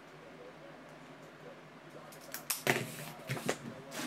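A marker pen is set down on a table with a knock.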